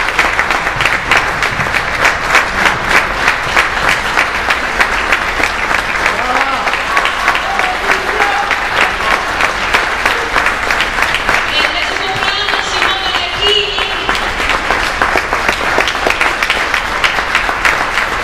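An audience applauds steadily in a hall.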